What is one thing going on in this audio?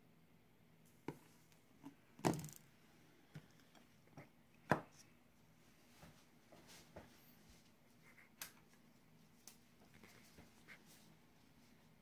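Glass and plastic containers clink and knock on a wooden table.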